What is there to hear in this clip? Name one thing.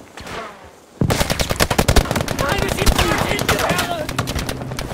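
Heavy gunfire rattles in rapid bursts nearby.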